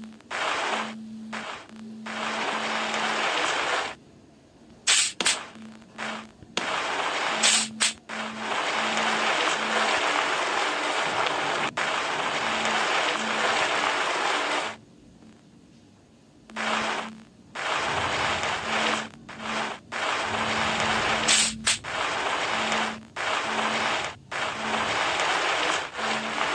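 A small electric motor whirs in bursts as a scooter rolls along.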